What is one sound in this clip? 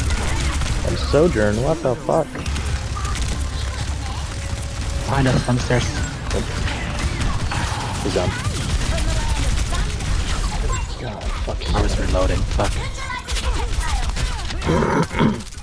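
Energy weapons crackle and whine.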